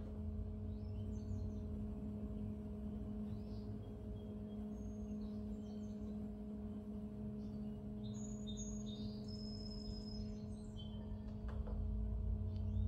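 A pottery wheel motor hums steadily.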